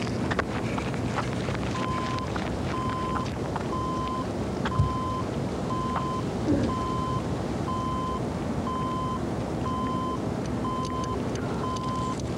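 Running shoes pat steadily on asphalt.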